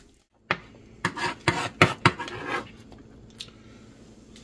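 A knife chops on a cutting board with quick, sharp taps.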